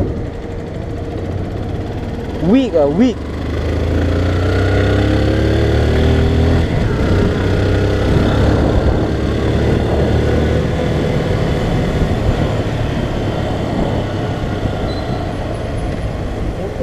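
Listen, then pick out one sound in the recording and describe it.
Wind rushes past loudly, as if outdoors while riding.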